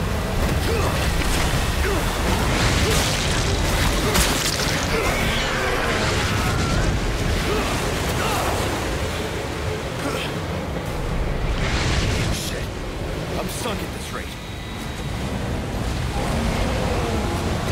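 Water splashes and churns around a boat.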